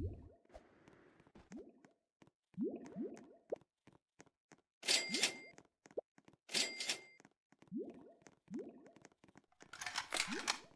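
Short rising electronic blips repeat quickly, with bright chiming bursts now and then.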